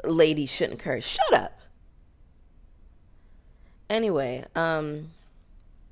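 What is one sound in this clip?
A young woman sings softly close to a microphone.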